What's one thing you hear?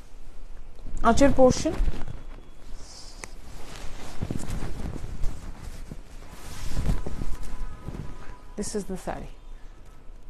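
A young woman speaks briefly and softly close by.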